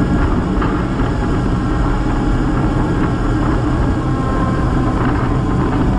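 Wind rumbles loudly past the microphone.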